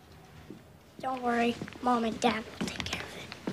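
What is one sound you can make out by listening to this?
A young boy speaks up loudly nearby.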